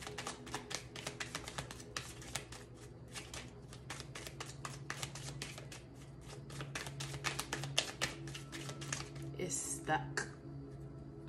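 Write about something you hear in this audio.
A deck of tarot cards is shuffled by hand, the cards riffling and flicking.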